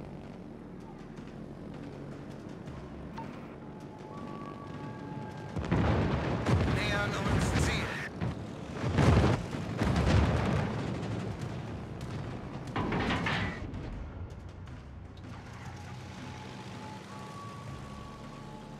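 A plane engine drones steadily.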